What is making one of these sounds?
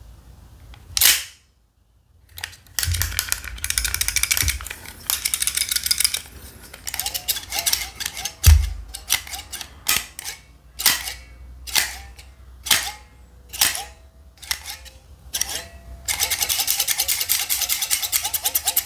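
A stapler's metal parts click and clack as hands handle it.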